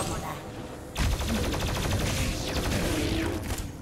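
An explosion bursts with a loud crackling boom.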